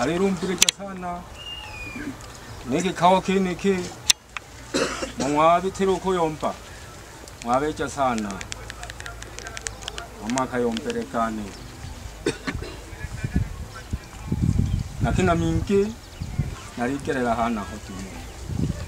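An elderly man speaks with animation outdoors, in short bursts with pauses.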